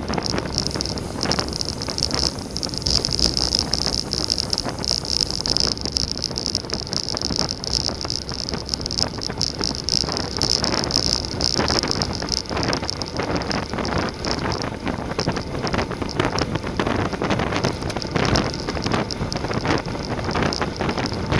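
Wind rushes and buffets loudly past a fast-moving bicycle.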